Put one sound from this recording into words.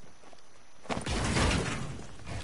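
A wall shatters with loud crashing bursts.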